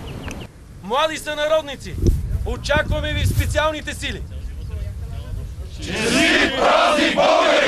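A crowd of soldiers shouts in unison outdoors.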